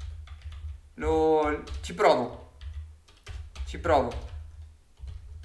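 A young man speaks briefly and expressively, close to a microphone.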